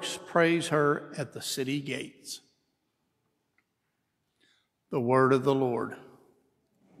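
A man sings a chant through a microphone in a large echoing hall.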